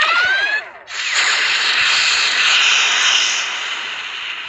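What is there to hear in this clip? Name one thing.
Laser blasts fire with rushing electronic noise.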